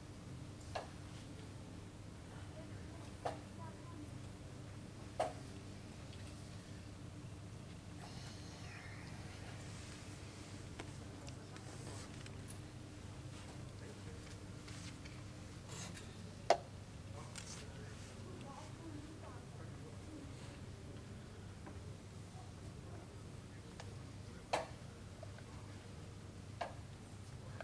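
Chess pieces tap down on a wooden board now and then.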